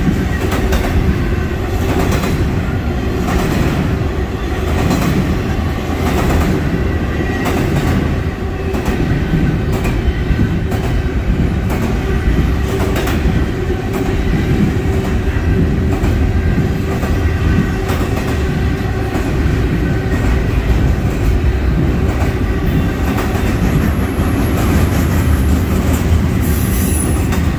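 A long freight train rumbles steadily past close by.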